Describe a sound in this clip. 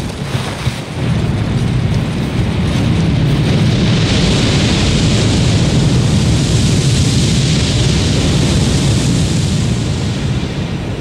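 A large fire roars loudly.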